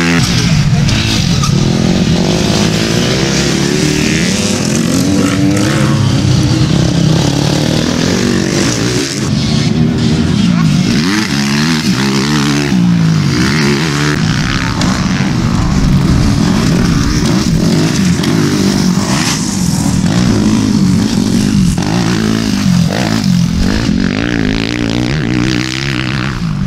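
Dirt bike engines rev and roar loudly as the bikes race past.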